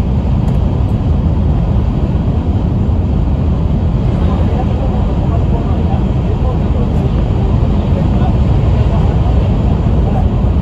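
A train rumbles steadily along the tracks at speed.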